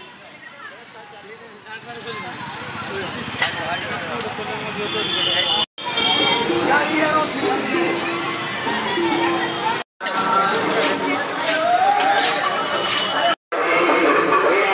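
A busy crowd chatters outdoors, with many voices mixing.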